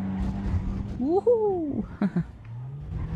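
Car tyres screech briefly during a skid.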